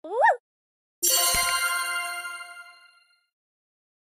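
A bright game chime rings out and slowly fades.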